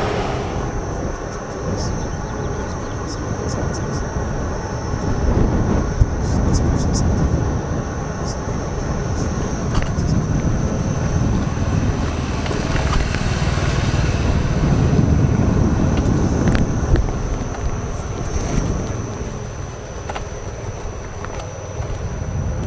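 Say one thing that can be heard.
Wind rushes loudly against a nearby microphone.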